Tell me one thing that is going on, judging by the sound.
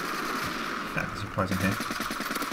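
A gun fires a short burst of shots.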